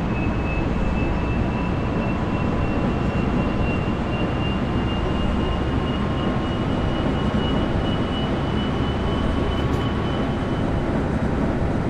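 A train's electric motor whines with a steady high tone.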